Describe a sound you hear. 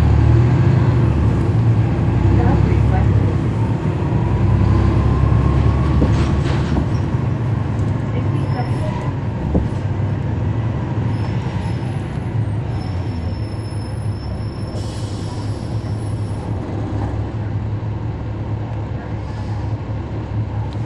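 A city bus engine idles with a low, steady rumble close by.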